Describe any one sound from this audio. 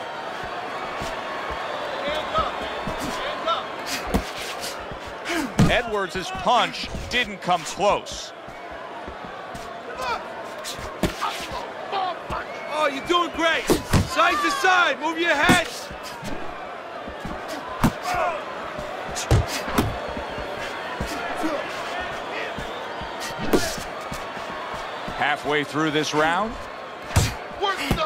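Gloved punches thud against a body in quick bursts.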